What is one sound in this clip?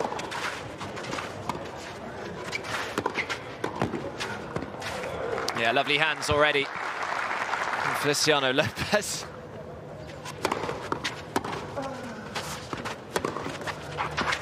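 A tennis ball is struck back and forth with rackets in a rally.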